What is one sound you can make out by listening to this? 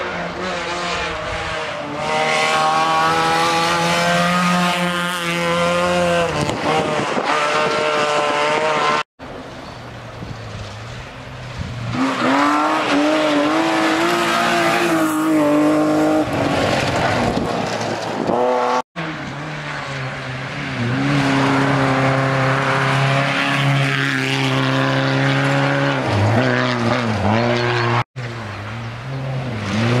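A rally car engine roars and revs hard as the car speeds past close by.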